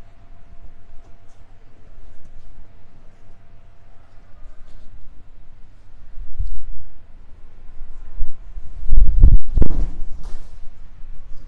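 Cloth rustles as fabric is unfolded and handled.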